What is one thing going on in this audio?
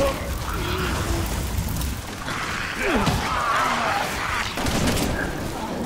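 Flames crackle and burn close by.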